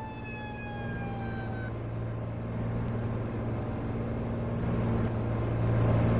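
A truck engine hums and revs.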